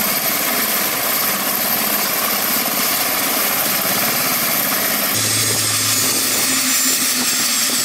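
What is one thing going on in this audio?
A helicopter's rotor whirs loudly and steadily close by.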